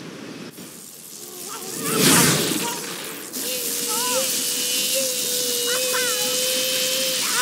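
Waterfalls roar steadily in the distance.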